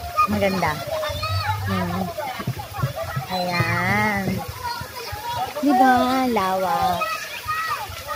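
Water splashes and sprays.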